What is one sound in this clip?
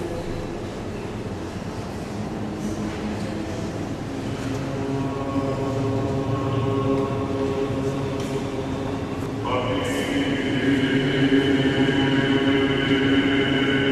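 A choir of men chants together in a slow, sustained unison, echoing in a large resonant hall.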